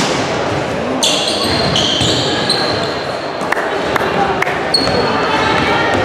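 Sneakers squeak on a hardwood gym floor in a large echoing hall.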